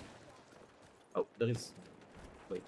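A pistol fires sharp, loud shots.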